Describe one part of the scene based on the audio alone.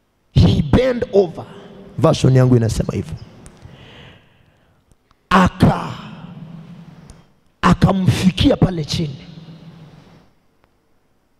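A man shouts with passion into a microphone, heard through loudspeakers in an echoing hall.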